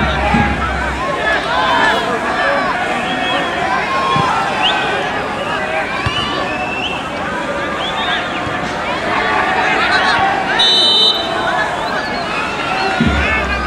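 A football is kicked with dull thumps on a grass field.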